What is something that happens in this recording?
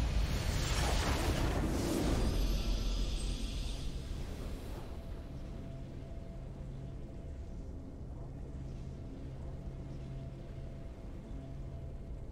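A triumphant victory fanfare swells.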